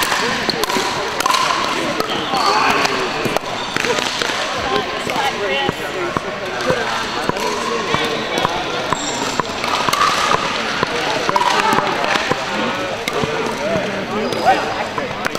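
A crowd of men and women chatter throughout a large echoing hall.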